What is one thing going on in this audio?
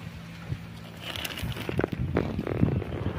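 A plastic sack rustles and crinkles.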